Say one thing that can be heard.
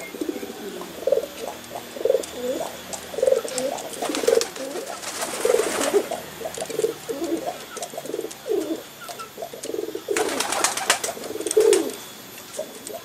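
A pigeon coos repeatedly close by.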